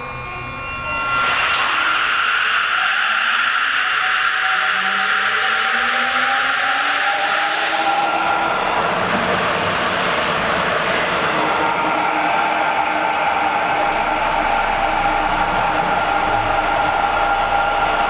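Train motors whine with rising pitch as the train speeds up.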